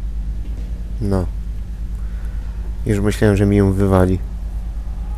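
A young man speaks tensely, close by.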